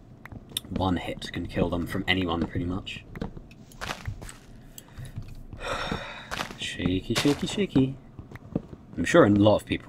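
Blocks crunch repeatedly as they are dug out.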